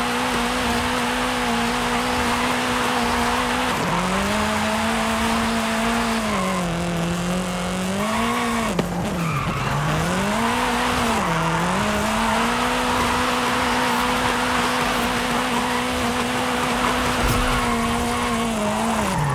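A car engine roars at high speed, its pitch dropping and rising as gears shift.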